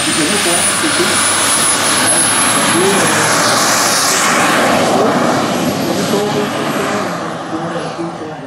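A model jet engine roars loudly as the jet takes off, then fades into the distance.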